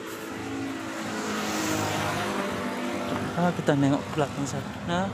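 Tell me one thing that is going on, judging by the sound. A motorbike engine drones as it passes on a nearby road.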